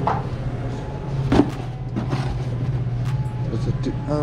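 Cardboard boxes rustle and scrape.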